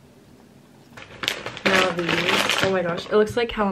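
A snack bag crinkles.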